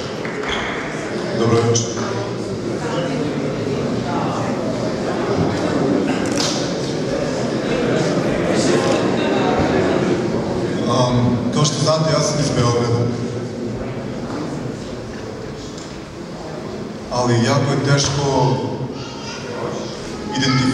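A man speaks into a microphone, heard through loudspeakers in an echoing hall.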